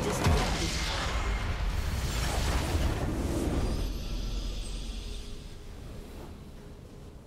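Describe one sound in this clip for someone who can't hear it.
A loud rumbling blast of a structure exploding in a video game fades away.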